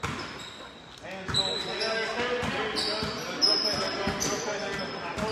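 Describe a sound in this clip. A crowd of spectators shouts and cheers.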